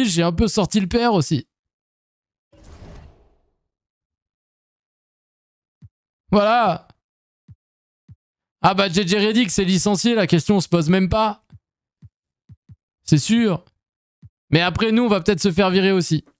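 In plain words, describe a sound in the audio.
A young man talks with animation close to a microphone, in short bursts with pauses.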